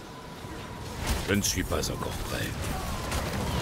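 An adult man speaks into a close microphone.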